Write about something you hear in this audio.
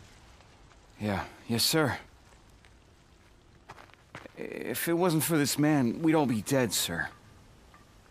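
A younger man answers in a relaxed voice, close by.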